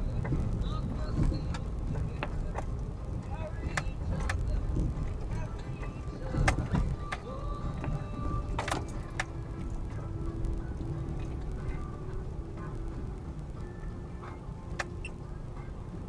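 Loose things rattle and knock inside the car over bumps.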